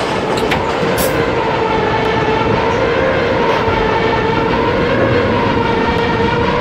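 Train wheels rumble and clatter over rails.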